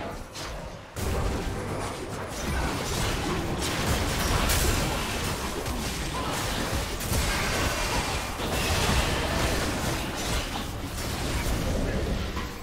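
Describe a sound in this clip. Game spell effects and hits crash and whoosh in a rapid flurry.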